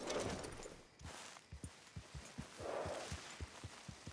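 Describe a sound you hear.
Leaves and branches rustle as a horse pushes through brush.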